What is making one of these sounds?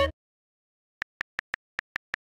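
Keyboard taps tick quickly.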